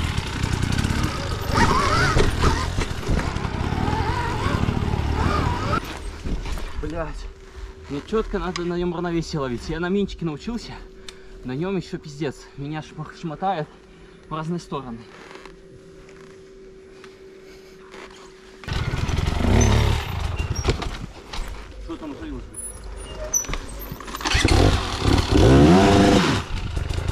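A dirt bike engine roars and revs on a trail.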